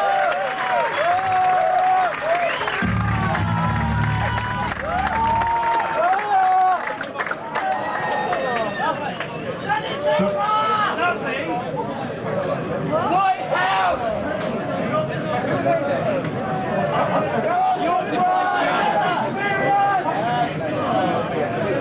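A drum kit is played loudly, with cymbals crashing, in a live band.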